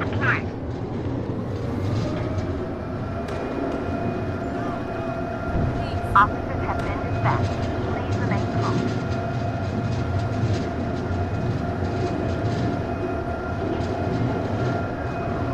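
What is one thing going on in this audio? A truck engine hums steadily as it drives along a street.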